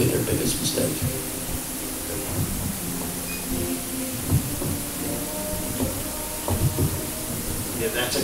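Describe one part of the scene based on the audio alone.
A man talks quietly, away from the microphone.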